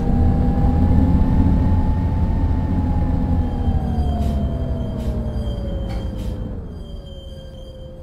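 A bus engine hums and drops in pitch as the bus slows.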